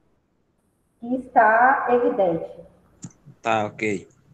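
A young woman speaks calmly through an online call.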